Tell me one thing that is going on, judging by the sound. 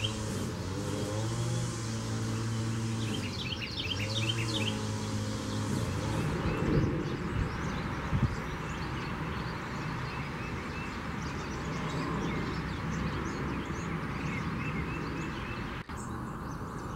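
Small birds chirp and twitter outdoors.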